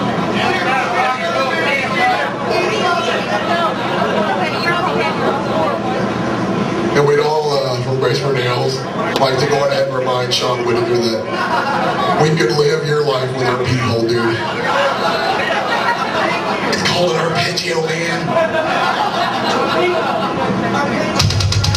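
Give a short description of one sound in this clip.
A heavy metal band plays loudly with distorted electric guitars.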